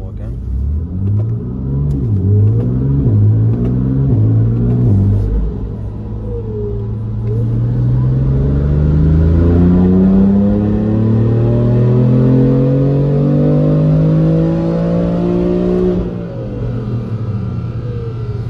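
A car engine idles with a deep rumble.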